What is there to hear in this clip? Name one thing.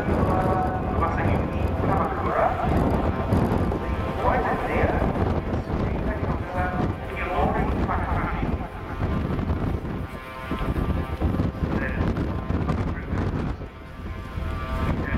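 A jet aircraft's engines roar steadily overhead.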